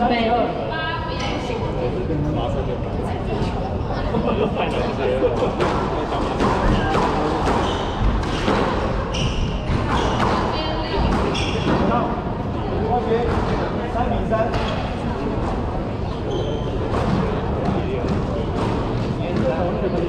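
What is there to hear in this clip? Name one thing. Footsteps thud quickly on a wooden floor.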